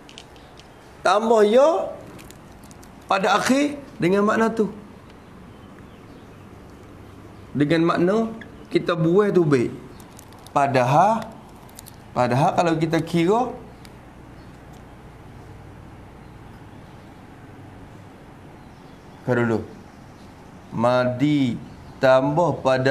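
A man speaks calmly and clearly in short phrases, close by.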